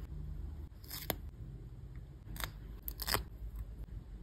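A sticker peels off its backing with a soft crackle.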